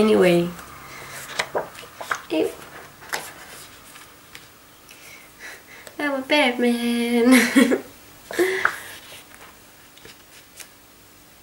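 Stiff glossy pages are turned with a papery rustle.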